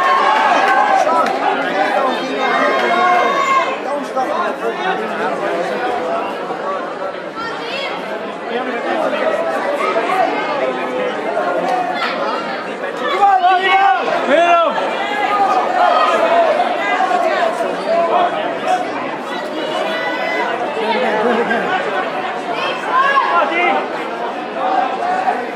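A crowd of spectators chatters and shouts throughout, echoing in a large hall.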